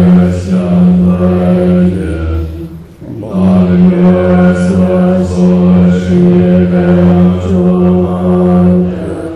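An elderly man chants in a low, steady voice.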